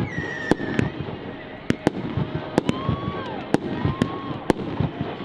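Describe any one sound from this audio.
Firework rockets whistle as they rise.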